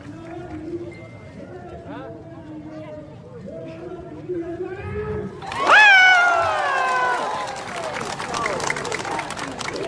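A crowd of people talks and calls out nearby outdoors.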